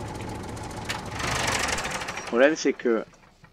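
A tractor engine rumbles and then cuts out.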